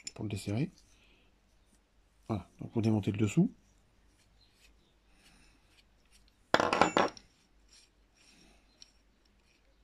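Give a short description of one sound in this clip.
Small metal parts click and scrape together.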